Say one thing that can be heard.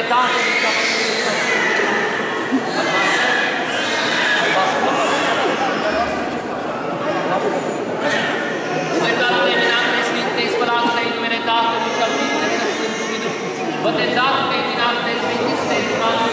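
A man chants loudly in a large echoing hall.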